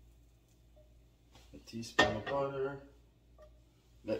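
A metal pan is set down on a stove grate with a clank.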